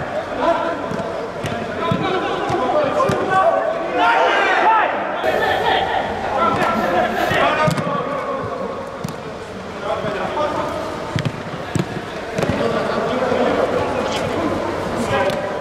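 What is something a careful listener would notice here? A football is kicked with dull thuds in a large echoing hall.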